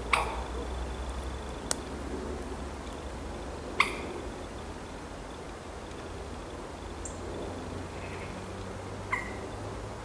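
A heron's feet rustle softly on dry leaves.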